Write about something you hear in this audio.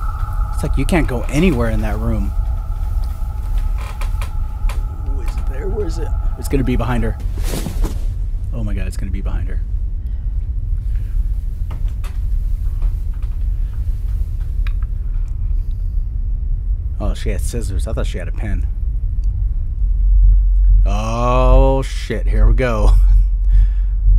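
A young man speaks in short bursts into a close microphone.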